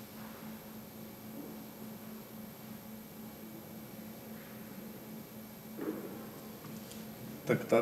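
A woman speaks quietly into a microphone in a large room.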